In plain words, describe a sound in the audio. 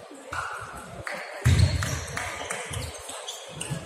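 A table tennis ball clicks against paddles and the table in a large echoing hall.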